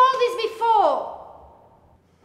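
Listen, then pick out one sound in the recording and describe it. A woman speaks loudly with exasperation, close by.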